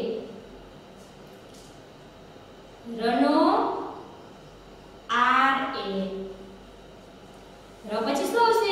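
A woman speaks slowly and clearly, as if teaching, in short phrases with pauses.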